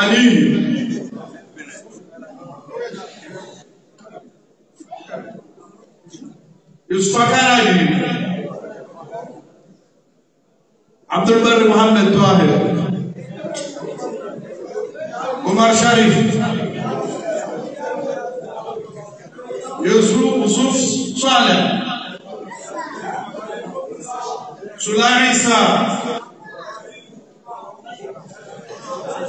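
A man chants loudly into a microphone, heard through loudspeakers in an echoing hall.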